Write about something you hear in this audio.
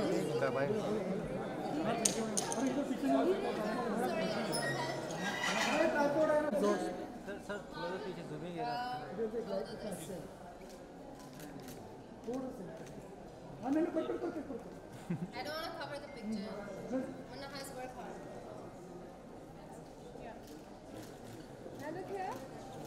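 A crowd of people chatter nearby in a busy room.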